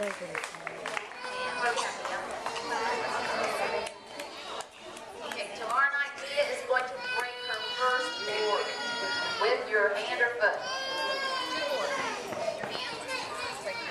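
A young girl answers into a microphone, amplified through a loudspeaker.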